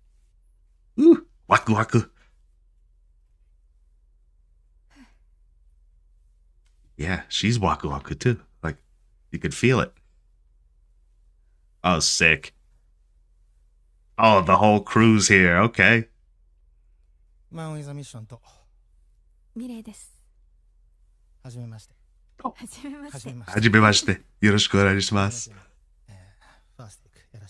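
A man talks with animation into a close microphone, pausing often.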